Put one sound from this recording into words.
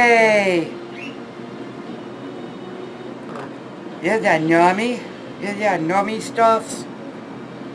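A woman talks in a high, playful voice close by.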